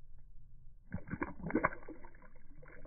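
A fish splashes into water.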